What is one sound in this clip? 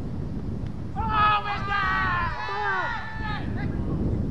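Men on the field shout loudly from a distance.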